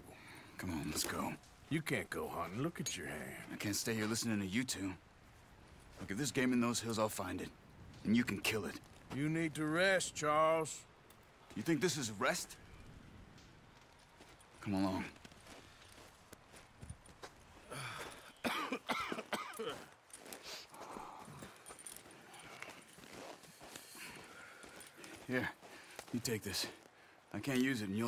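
A man speaks in a low, gruff voice, close by.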